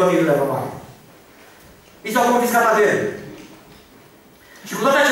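An older man speaks slowly and with emphasis into a microphone, heard over a loudspeaker.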